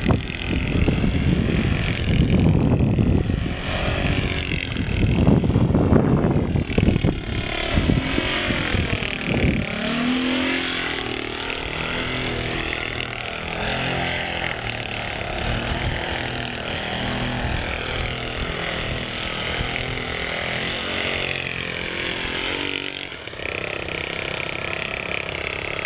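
A model airplane engine buzzes overhead, rising and falling.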